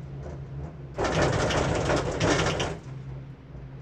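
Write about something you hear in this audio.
A gondola cabin rumbles over the rollers of a lift tower.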